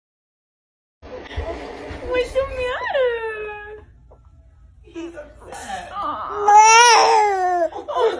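A young infant whimpers and cries.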